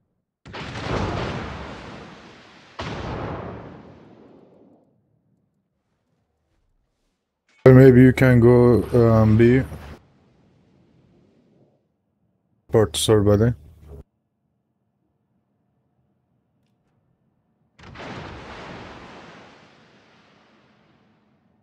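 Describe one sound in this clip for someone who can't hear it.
Heavy naval guns fire with deep booms that rumble away.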